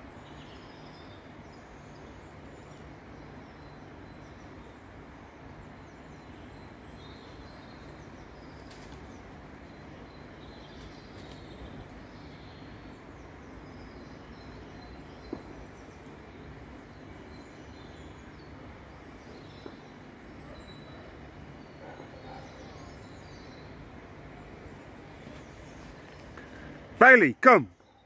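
A stream flows gently nearby.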